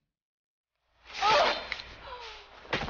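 A young woman cries out sharply.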